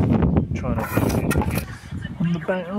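A trowel scrapes and slaps wet mortar close by.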